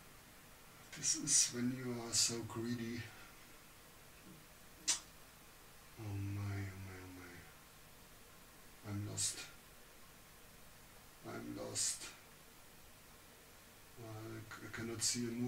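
An elderly man comments through a microphone in short, thoughtful phrases.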